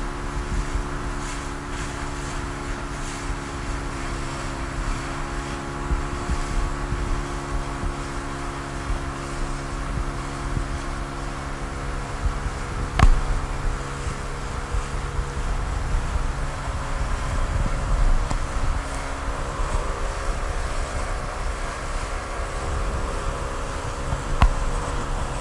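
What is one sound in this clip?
Water rushes and splashes against an inflatable boat's hull.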